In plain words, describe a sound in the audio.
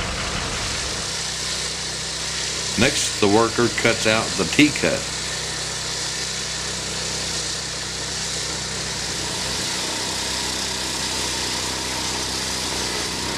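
A petrol-engined walk-behind concrete saw cuts through asphalt.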